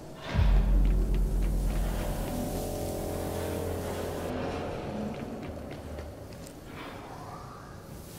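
Footsteps clang on a metal pipe.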